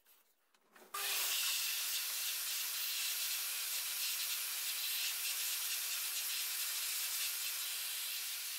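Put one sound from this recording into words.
A vacuum cleaner hums and whooshes loudly.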